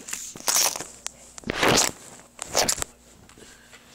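Loud bumps and rustles come from a phone being handled close by.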